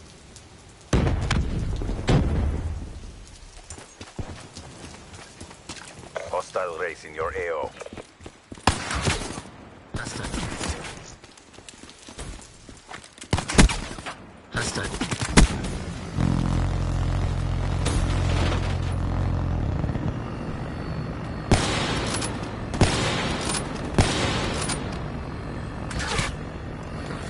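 Rifle shots crack sharply, one at a time.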